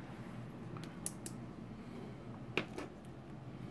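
A small plastic connector clicks into place.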